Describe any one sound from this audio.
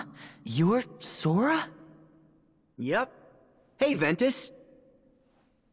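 A young man answers cheerfully.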